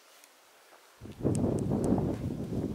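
Footsteps crunch on the ground as a man walks away.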